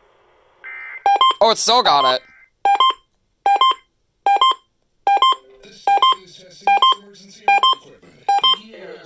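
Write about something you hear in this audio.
A radio alarm beeps loudly over and over in short, sharp bursts.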